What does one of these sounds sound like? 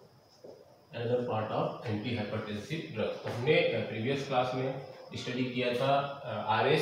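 A man speaks clearly and steadily close by.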